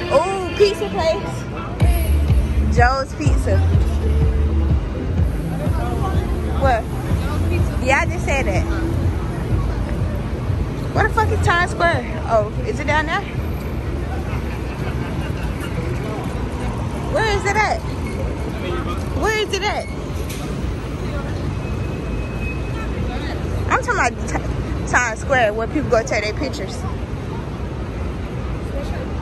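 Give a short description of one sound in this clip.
Steady city traffic rumbles and hums outdoors.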